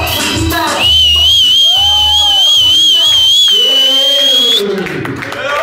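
A young man beatboxes into a microphone through loudspeakers.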